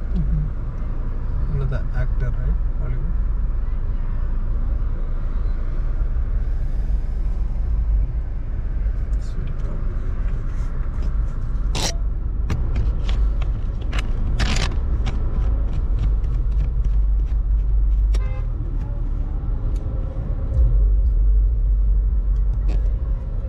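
Other cars idle and roll slowly nearby.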